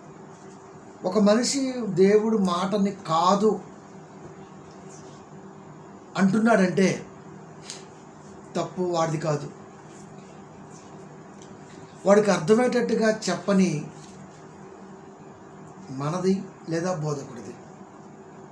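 A middle-aged man sings slowly and expressively close to a microphone, in short phrases with pauses.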